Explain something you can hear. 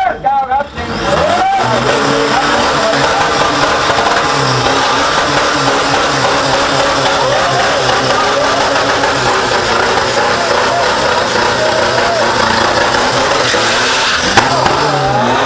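Tyres screech steadily as they spin on the spot.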